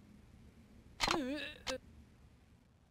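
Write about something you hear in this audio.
A young woman speaks firmly and with emotion.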